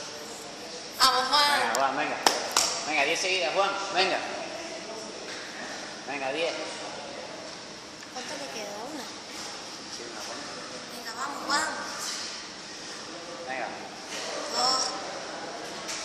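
A man talks nearby in a small echoing room.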